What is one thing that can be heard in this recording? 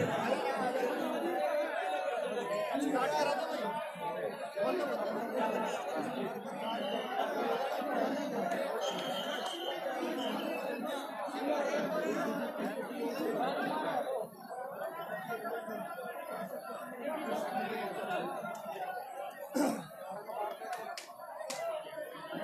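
A large crowd of men chatters and calls out loudly outdoors.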